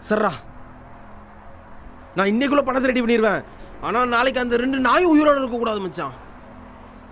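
A young man talks on a phone, speaking tensely and close.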